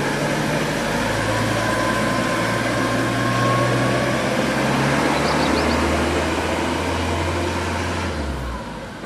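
A van engine rumbles as it drives away over cobblestones.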